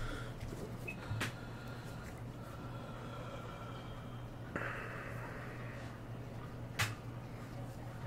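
Playing cards rustle and flick as they are shuffled by hand.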